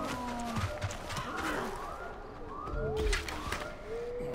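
A bow releases an arrow with a sharp twang.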